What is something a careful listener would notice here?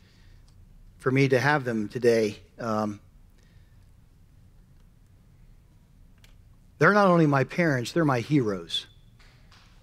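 A middle-aged man speaks calmly through a microphone in a large hall.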